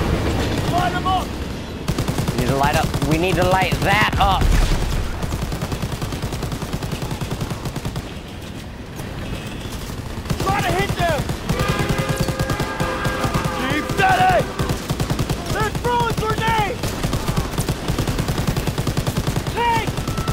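A machine gun fires in rapid bursts close by.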